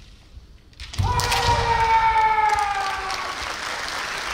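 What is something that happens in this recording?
A man lets out a long, loud kiai shout in a large echoing hall.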